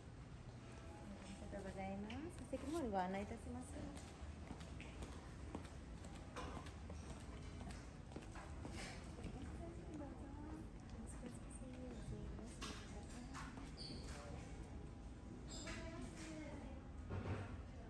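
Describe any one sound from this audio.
A woman speaks politely nearby.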